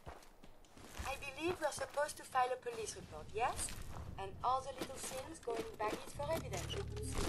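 A young man talks calmly into a close microphone.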